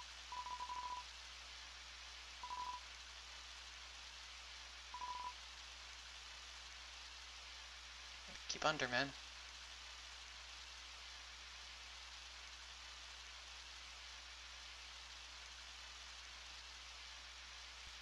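Rain patters steadily throughout.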